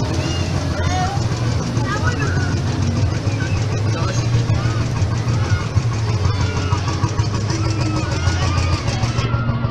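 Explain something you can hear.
Young people chatter and shout over the noise outdoors.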